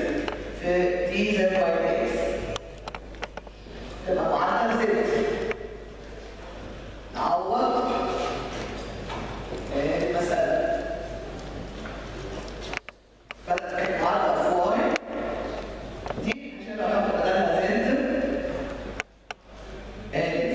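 A woman speaks steadily through a microphone.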